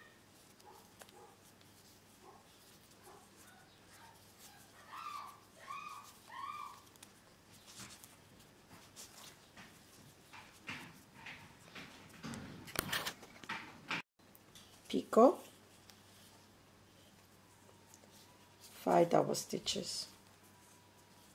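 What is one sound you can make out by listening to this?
Thread and lace rustle softly as they are handled.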